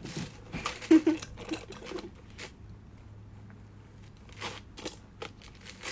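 A young woman sips a drink through a straw.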